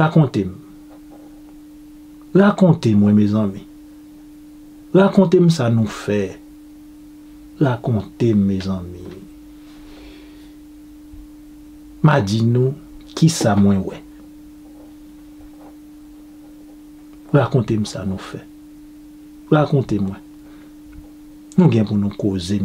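A man speaks close to a microphone in short, lively bursts with pauses between.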